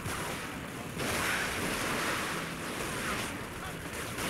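Dry branches crash and crackle.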